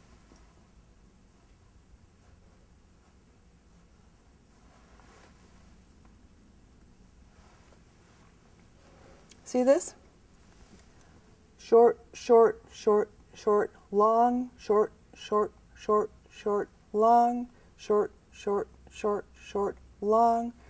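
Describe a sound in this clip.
A paintbrush brushes softly across a canvas.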